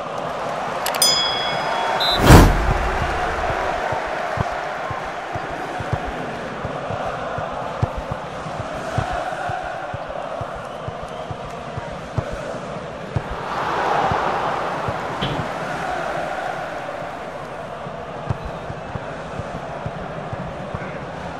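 A stadium crowd roars steadily, swelling now and then.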